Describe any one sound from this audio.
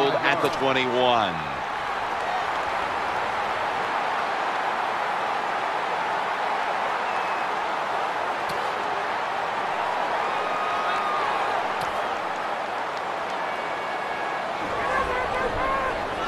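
A large crowd roars steadily in a big open stadium.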